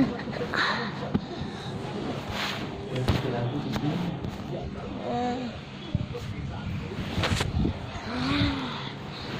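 A phone rubs and bumps against fabric.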